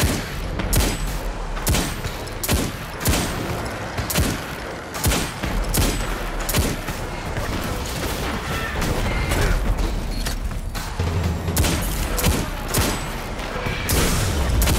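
A hand cannon fires loud, booming shots at a steady pace.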